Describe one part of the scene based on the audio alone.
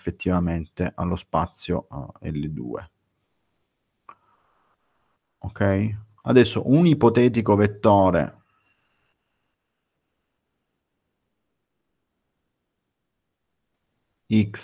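A man speaks calmly through an online call, pausing between phrases.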